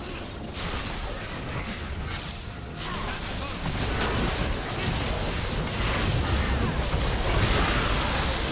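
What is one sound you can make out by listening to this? Magic spells crackle and whoosh in a fierce battle.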